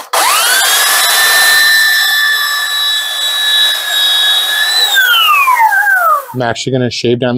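A belt sander whines loudly and steadily, then winds down.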